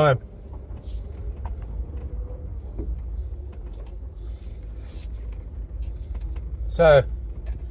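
A car engine rumbles low and steady from inside the car.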